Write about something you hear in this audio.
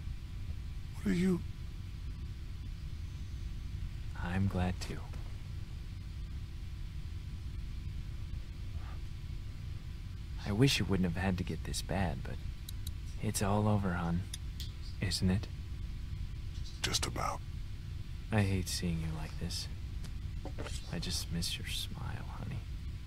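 A man speaks quietly and gently, in short phrases with pauses.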